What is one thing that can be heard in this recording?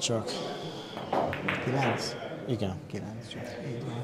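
Billiard balls click against each other and the cushions.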